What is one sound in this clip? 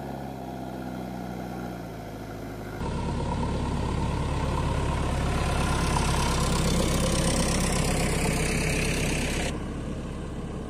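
A diesel engine of a loader rumbles steadily and grows louder as it approaches.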